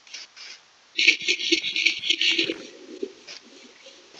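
Crunchy bites of food sound in quick succession.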